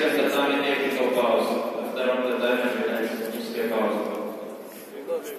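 Spectators and coaches shout in a large echoing hall.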